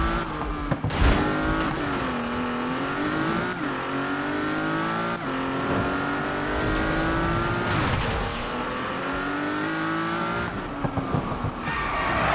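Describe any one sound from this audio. A car crashes through roadblock barriers with loud bangs.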